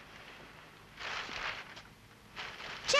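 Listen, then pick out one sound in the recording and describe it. A newspaper rustles as pages are handled.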